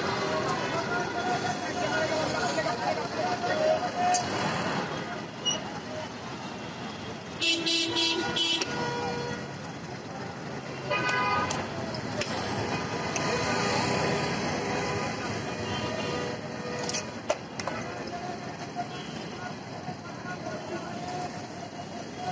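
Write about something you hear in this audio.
A crowd of passers-by chatters in the background.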